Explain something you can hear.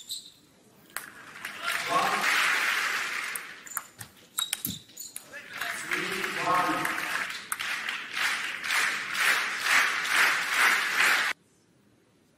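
A crowd applauds and cheers loudly in a large hall.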